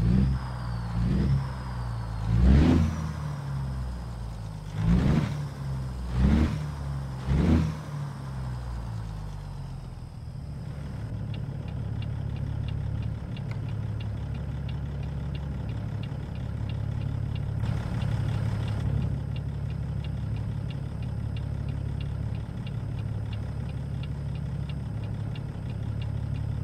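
A diesel semi-truck with a Caterpillar inline-six engine idles.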